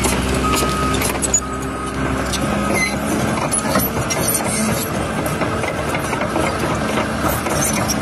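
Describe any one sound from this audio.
A crawler bulldozer engine rumbles under load.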